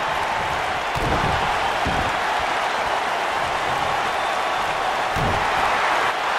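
Heavy thuds sound as a body slams onto a wrestling ring's mat.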